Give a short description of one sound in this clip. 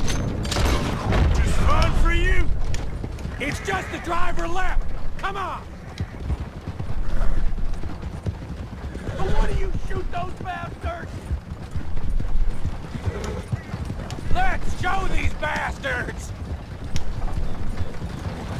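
Horses gallop, hooves pounding on a dirt track.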